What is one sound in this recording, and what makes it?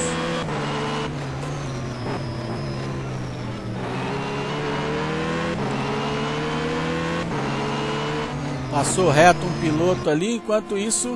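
A race car engine roars steadily, rising and falling in pitch as it shifts gears.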